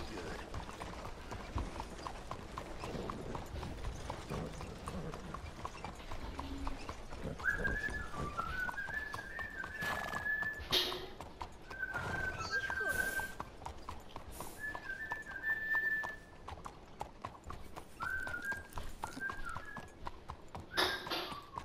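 Horse hooves clop steadily on a hard street.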